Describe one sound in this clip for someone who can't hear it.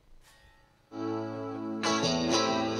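An electric guitar plays a sustained chord.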